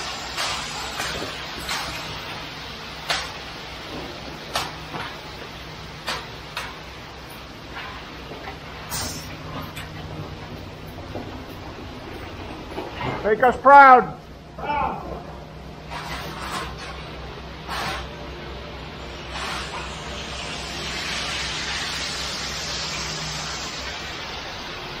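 Wet concrete slides and pours down a metal chute.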